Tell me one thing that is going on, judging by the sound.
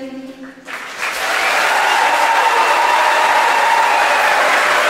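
A large audience claps and cheers in a large hall.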